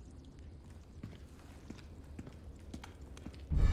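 Footsteps thud slowly on a hard floor.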